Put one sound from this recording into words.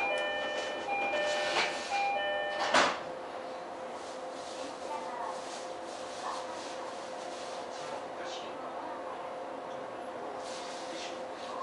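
A train's motors hum steadily at rest.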